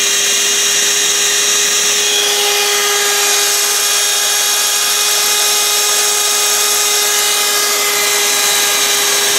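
A small electric motor whirs steadily with a high buzzing hum.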